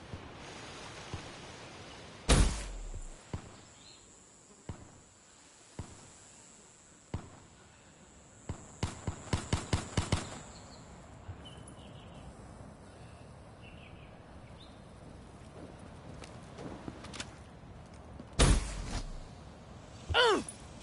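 Footsteps thud on grass and dirt.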